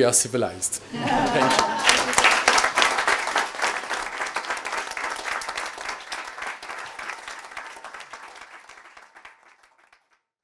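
An audience applauds and slowly fades away.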